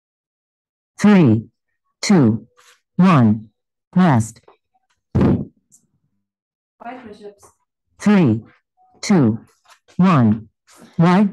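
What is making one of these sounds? A woman calls out counts in short, loud bursts over an online call.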